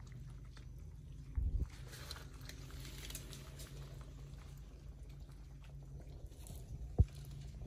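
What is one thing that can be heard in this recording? Dry leaves rustle and crackle under a small monkey's feet.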